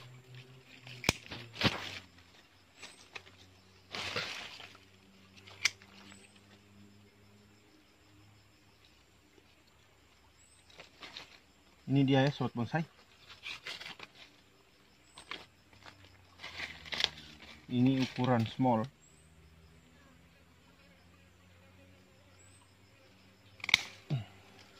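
Pruning shears snip sharply, several times.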